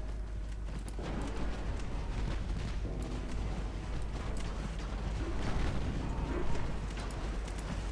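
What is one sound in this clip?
Water rushes and splashes along a moving ship's hull.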